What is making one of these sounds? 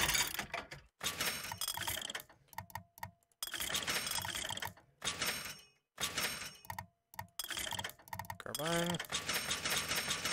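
Menu selections click and chime in short bursts.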